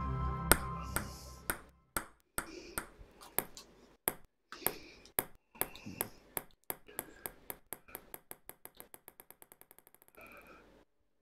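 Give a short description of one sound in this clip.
A ping-pong ball bounces on a table, faster and faster until it settles.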